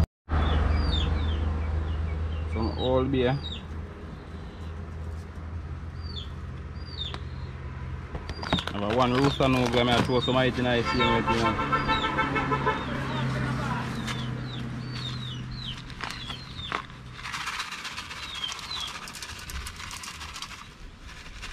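Seasoning rattles as it is shaken from a plastic shaker into a metal bowl.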